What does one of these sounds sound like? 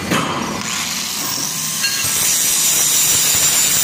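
An angle grinder whirs loudly.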